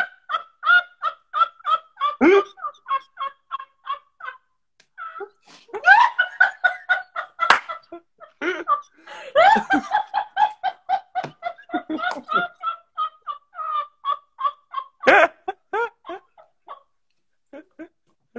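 A young man laughs heartily over an online call.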